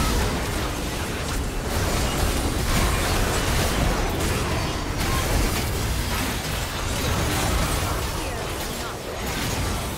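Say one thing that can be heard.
Magic spell effects whoosh, crackle and boom in a busy video game battle.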